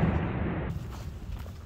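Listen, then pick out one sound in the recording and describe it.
Footsteps crunch on debris.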